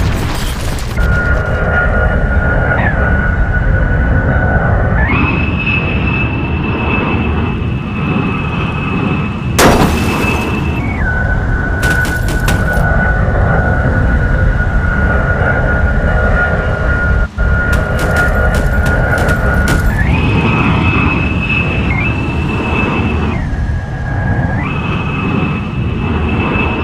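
A jet engine roars steadily with a high whine that steps up and down in pitch.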